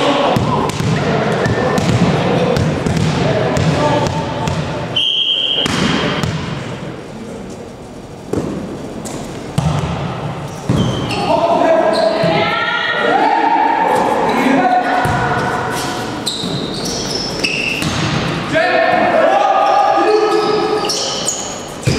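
A volleyball is struck hard several times in a large echoing hall.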